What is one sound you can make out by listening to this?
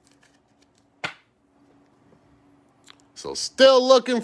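A hard plastic card case taps and rustles as hands handle it.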